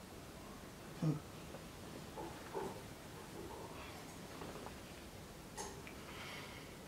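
Bedding rustles as a man shifts in bed.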